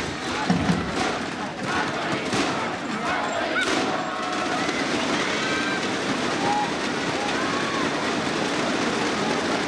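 A shuttlecock is struck by rackets with sharp pops.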